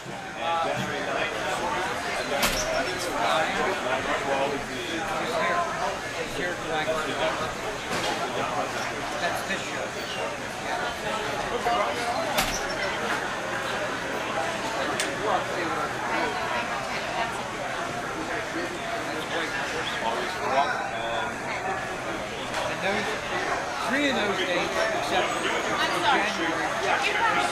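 Many voices chatter in the background of a busy room.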